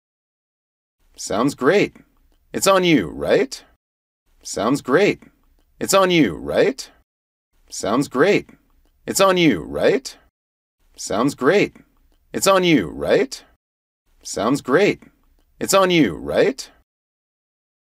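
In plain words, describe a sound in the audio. A man speaks clearly and calmly close to a microphone.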